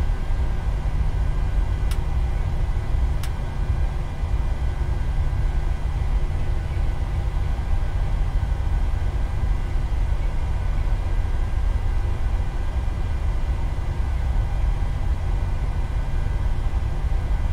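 Jet engines hum with a steady, low rumble.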